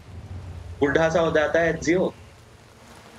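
A young man speaks loudly and with animation into a microphone.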